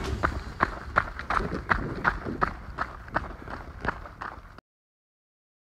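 Shoes crunch on gravelly ground with quick, even footsteps.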